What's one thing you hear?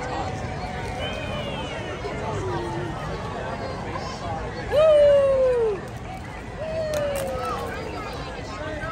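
Children shout and squeal nearby.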